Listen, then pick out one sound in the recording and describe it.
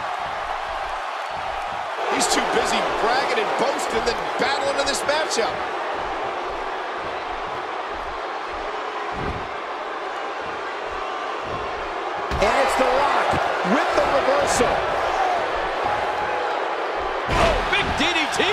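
A large crowd cheers and roars throughout.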